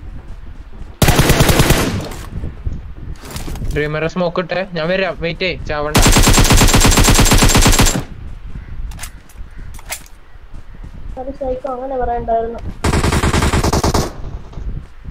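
Rapid bursts of gunfire ring out.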